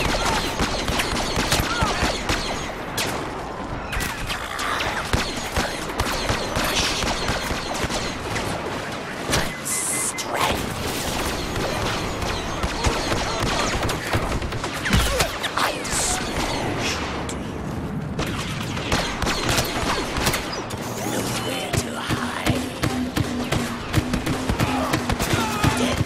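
Blaster shots fire in rapid bursts.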